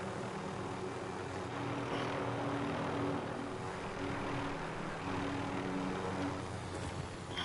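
A helicopter engine drones and its rotor thumps steadily.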